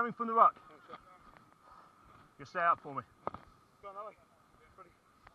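Young men shout to each other outdoors on an open field.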